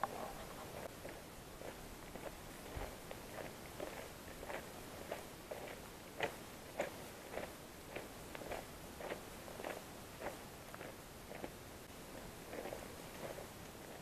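Footsteps crunch steadily on a dry dirt trail outdoors.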